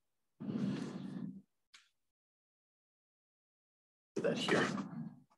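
A middle-aged man speaks calmly, close to a microphone.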